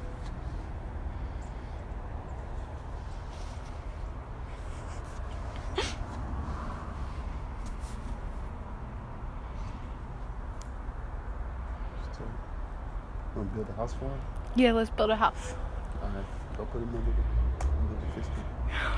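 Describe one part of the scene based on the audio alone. Wind rumbles softly outdoors.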